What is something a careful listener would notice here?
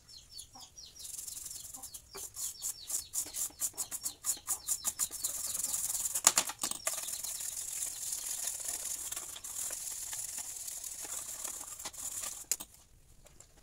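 A stiff brush scrubs rapidly across a circuit board.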